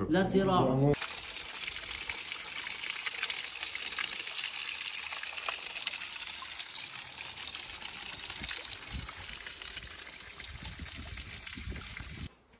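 Water pours from a spout and splashes onto stones.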